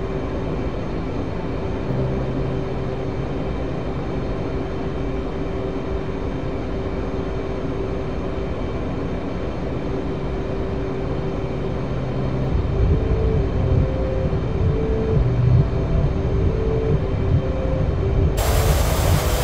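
A jet engine roars steadily inside a cockpit.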